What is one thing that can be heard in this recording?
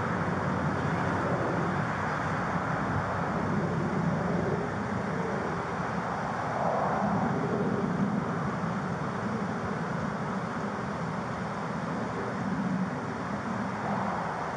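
A man speaks calmly close to a body microphone.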